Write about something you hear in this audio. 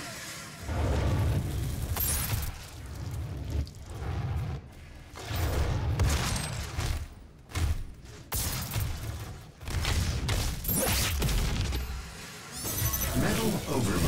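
A heavy gun fires in loud booming bursts.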